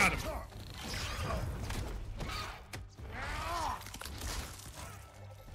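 A large creature screeches and roars.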